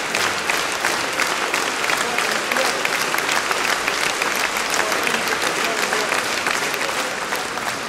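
An audience claps in a large echoing hall.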